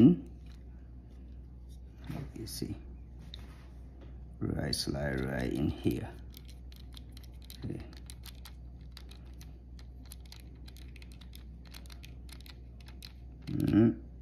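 A small plastic case clicks as it is pried open.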